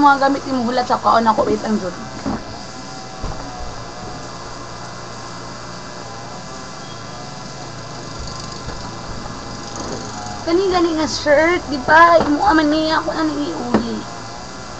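A young woman talks animatedly, close to a microphone.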